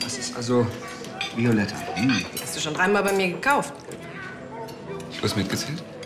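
Cutlery clinks on plates.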